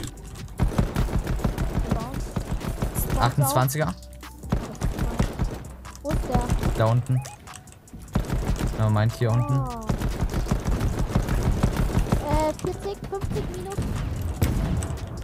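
Rapid clattering knocks of wooden walls being built in a video game.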